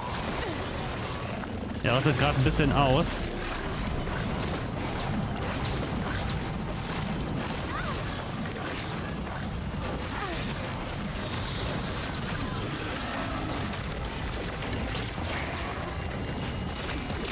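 A low, rumbling drone fills a large cavern.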